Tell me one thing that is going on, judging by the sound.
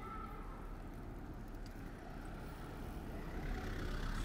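A car rolls slowly past on a paved street.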